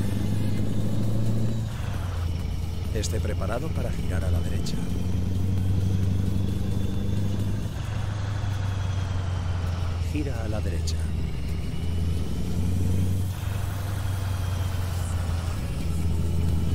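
A truck engine rumbles steadily and rises and falls as gears shift.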